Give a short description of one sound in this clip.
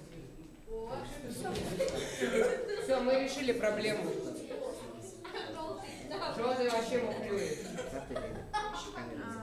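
A teenage boy talks loudly close by.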